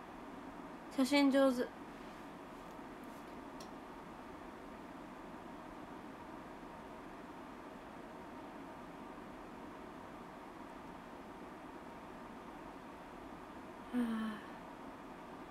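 A young woman speaks briefly and calmly close to a microphone.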